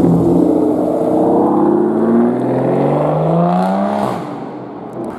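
A sports car engine revs hard, rising in pitch.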